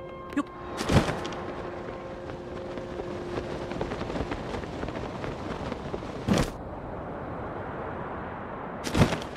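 A glider flaps in the wind while drifting down.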